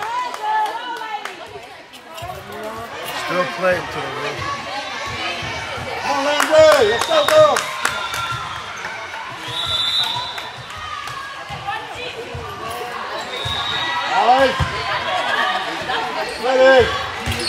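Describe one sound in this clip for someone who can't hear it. A volleyball is hit with a sharp smack.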